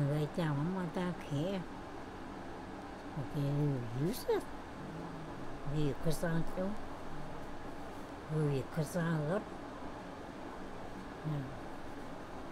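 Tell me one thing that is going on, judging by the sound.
An elderly woman speaks quietly and slowly, close by.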